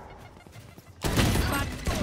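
A pistol fires sharp, loud shots.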